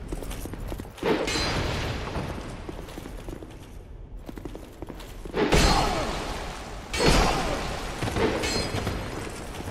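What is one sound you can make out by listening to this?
A burst of fire roars and crackles with sparks.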